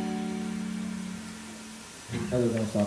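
An electric guitar holds a long ringing note.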